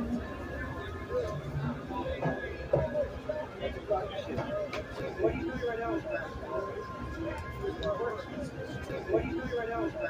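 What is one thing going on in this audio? A busy crowd murmurs in the background.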